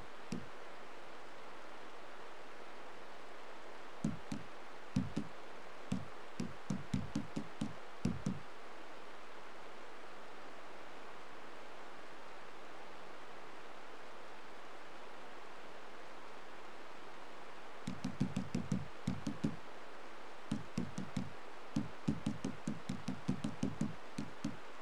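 Short soft clicks tick as a menu selection moves from item to item.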